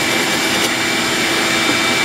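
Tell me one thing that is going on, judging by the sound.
A hole saw on a drill press cuts into a wooden block.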